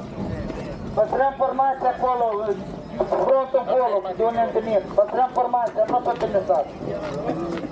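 A man shouts commands loudly nearby, outdoors.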